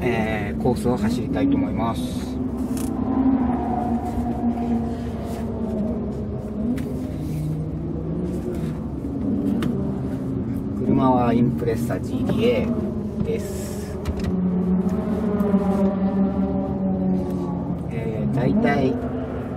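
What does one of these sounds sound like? A car engine idles steadily inside the car.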